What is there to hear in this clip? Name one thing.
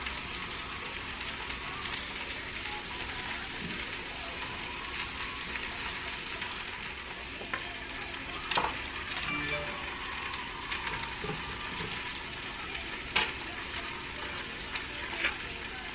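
A spoon scrapes the flesh of an avocado.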